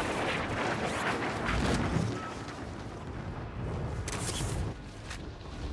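Wind rushes loudly during a fall through the air.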